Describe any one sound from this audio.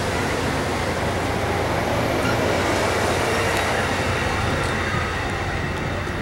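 Train wheels clatter and squeal faintly on the rails.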